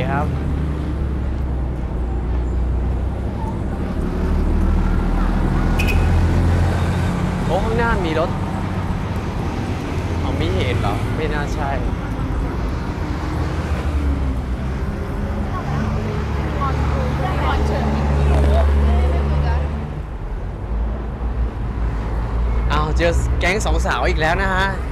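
Traffic rumbles steadily along a busy street.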